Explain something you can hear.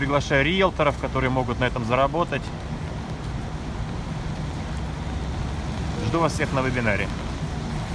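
Traffic rumbles steadily on a wet street outdoors.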